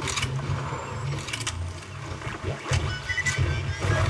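A gun clicks and clacks as it reloads.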